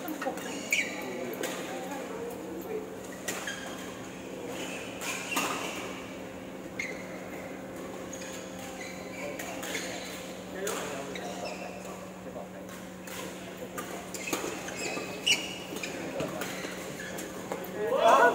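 Shoes squeak on the court floor.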